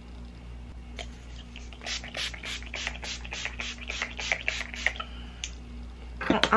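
A spray bottle hisses in quick repeated bursts.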